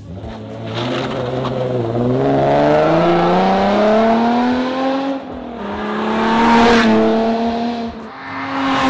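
A sports car engine revs hard as the car accelerates, rising in pitch, dropping briefly at a gear change, then rising again.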